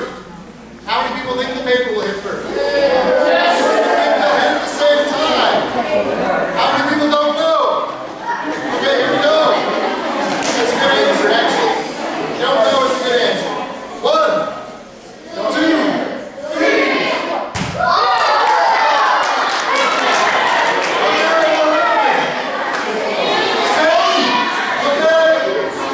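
A man speaks with animation to an audience in a large echoing hall.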